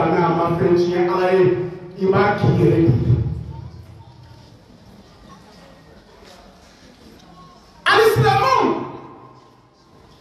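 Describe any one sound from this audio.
A man sings or chants loudly into a microphone, with a ringing echo.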